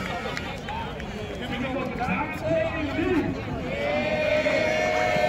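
A crowd of people chatters and cheers outdoors nearby.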